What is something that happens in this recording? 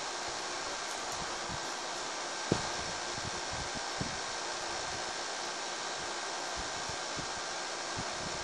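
A window air conditioner hums steadily.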